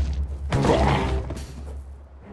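A blade swings and strikes with a heavy thud.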